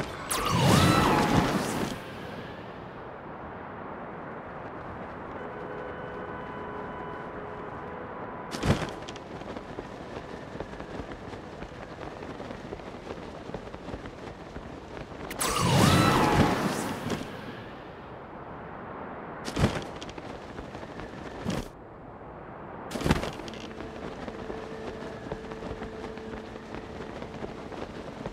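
Wind rushes steadily past, swelling into loud whooshing gusts.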